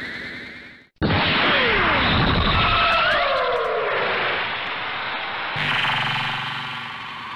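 A magical energy blast whooshes and crackles.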